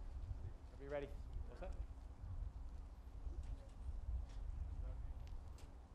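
A man speaks through a loudspeaker in the distance.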